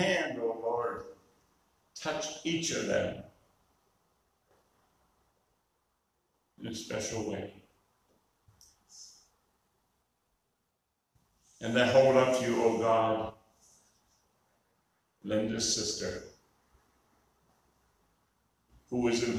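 An elderly man reads out slowly into a microphone, with pauses between phrases.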